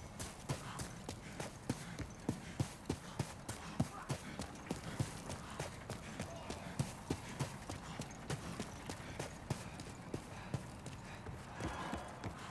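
Armoured footsteps run on stone.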